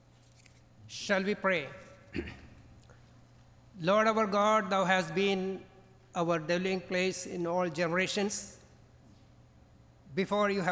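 An elderly man speaks calmly into a microphone, heard through loudspeakers in a large echoing hall.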